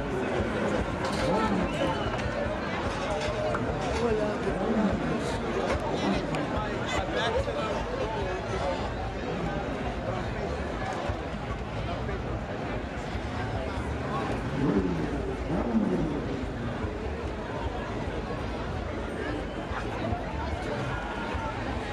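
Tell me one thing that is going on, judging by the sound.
A large outdoor crowd of men and women chatters and shouts.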